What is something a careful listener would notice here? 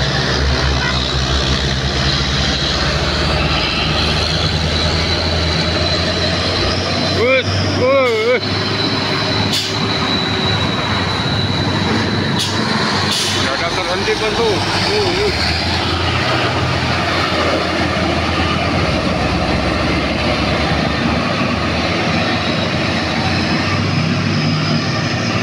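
A heavy truck engine rumbles and roars as it drives slowly along a road.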